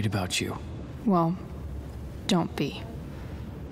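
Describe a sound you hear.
A young woman answers flatly, close by.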